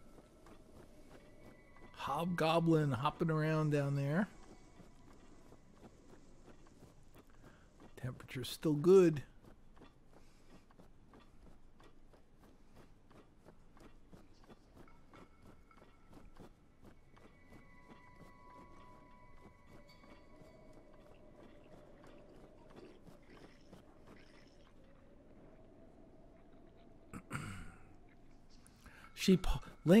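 Quick footsteps run across soft ground.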